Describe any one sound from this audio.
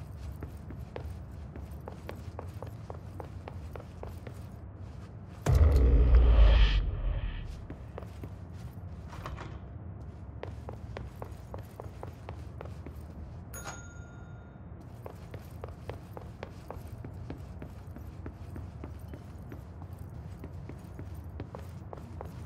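Quick footsteps thud on a floor indoors.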